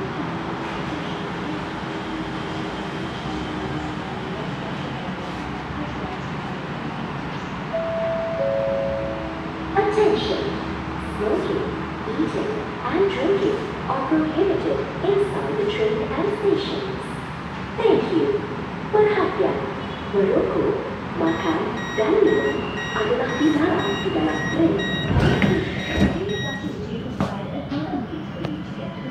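A train hums steadily while standing still.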